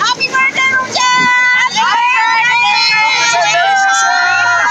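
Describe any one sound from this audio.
A group of women sing loudly together close by.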